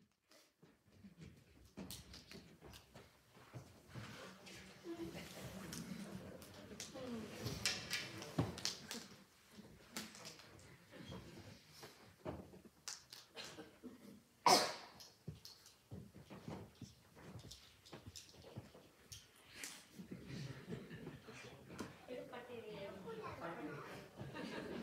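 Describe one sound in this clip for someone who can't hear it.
Members of an audience shift and murmur quietly nearby.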